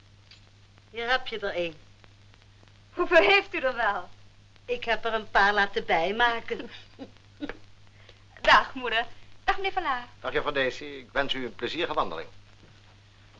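A young woman talks brightly.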